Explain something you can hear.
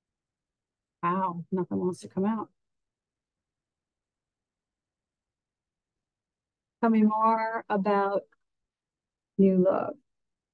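A middle-aged woman speaks calmly into a microphone in short bursts.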